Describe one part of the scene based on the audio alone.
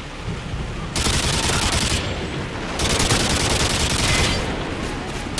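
A machine gun fires rapid bursts of loud shots.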